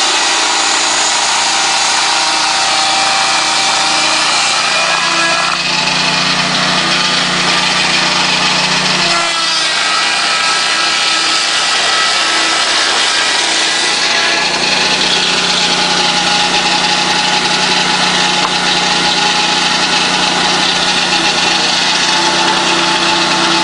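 A petrol engine drones loudly and steadily.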